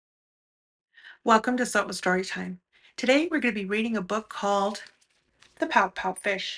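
A middle-aged woman speaks warmly and with animation close to a microphone.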